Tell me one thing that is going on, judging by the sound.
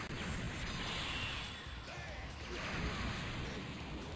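An energy blast roars and explodes.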